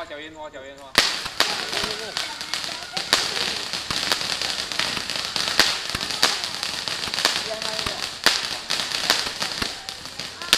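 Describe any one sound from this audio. A firework fizzes and crackles rapidly and steadily.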